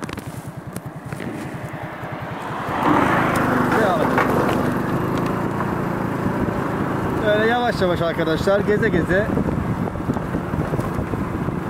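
A scooter engine putters and revs up as the scooter rides along.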